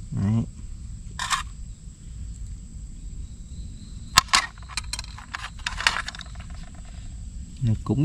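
A metal spoon clinks and scrapes against a metal pan.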